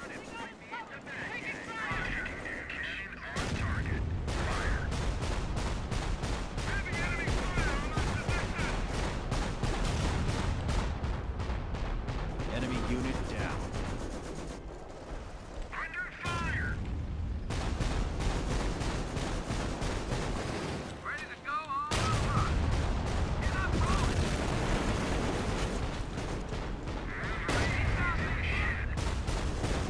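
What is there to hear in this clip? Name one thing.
A young man talks into a microphone with animation.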